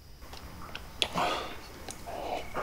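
A man sips a hot drink.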